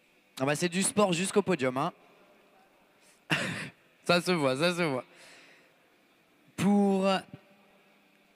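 A man announces over a loudspeaker in a large echoing hall.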